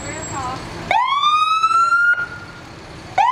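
A fire engine's siren winds up loudly and rises in pitch.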